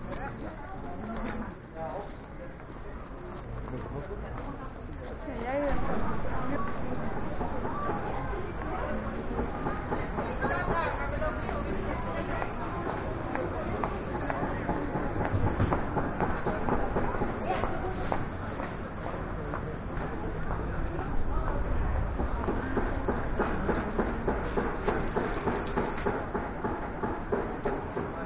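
Footsteps walk along a paved street.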